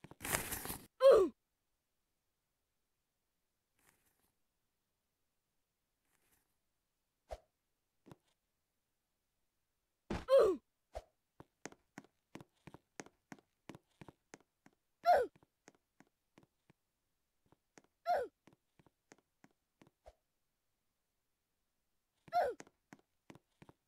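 A short falling game sound effect plays several times.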